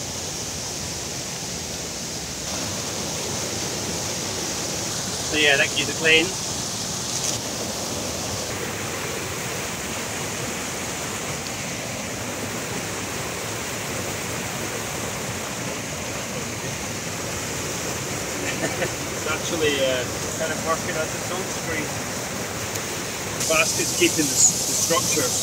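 A stream of water rushes and splashes steadily close by.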